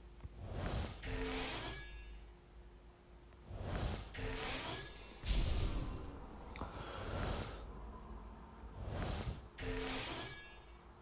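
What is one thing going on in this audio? Bright magical chimes sparkle and ring out in short bursts.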